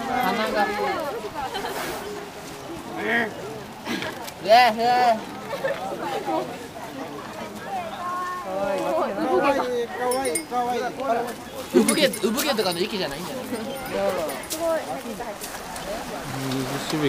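Several men and women talk and call out nearby outdoors.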